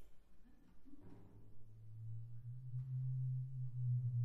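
A deep drum booms and hums low.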